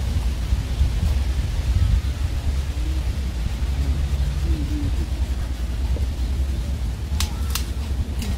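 Pruning shears snip branches.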